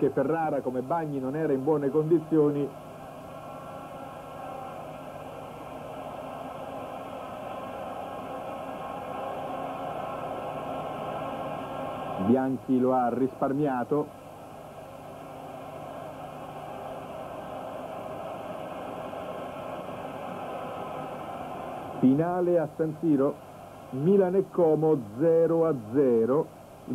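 A large stadium crowd roars steadily outdoors.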